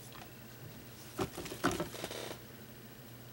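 A canvas board is shifted and knocks lightly against a surface.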